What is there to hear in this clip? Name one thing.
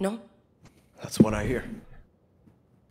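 A man answers briefly in a relaxed voice.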